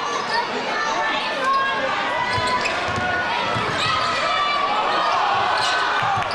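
A basketball bounces on the floor with dull thumps.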